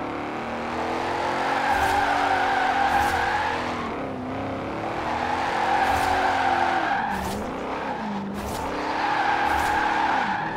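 Tyres screech in long squeals as a car slides sideways.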